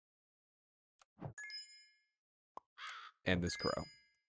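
Short cartoonish game sound effects pop and chime.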